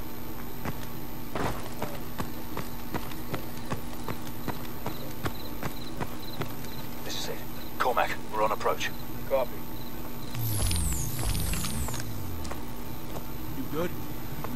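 Footsteps crunch steadily over wet ground.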